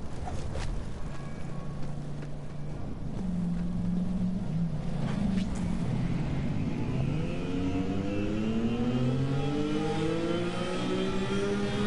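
A vehicle engine hums and revs up rising in pitch.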